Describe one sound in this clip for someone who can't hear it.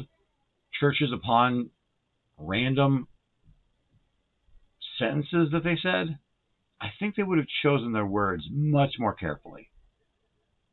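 A man speaks calmly and slowly into a nearby microphone, pausing between phrases.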